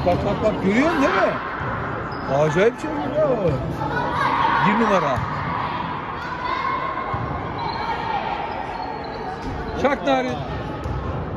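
Young girls shout and call out in a large echoing hall.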